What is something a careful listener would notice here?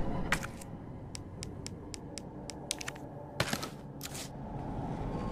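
Short menu clicks and blips sound in quick succession.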